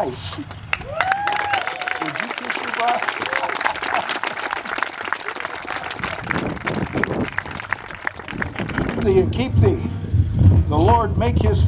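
A crowd claps and applauds loudly.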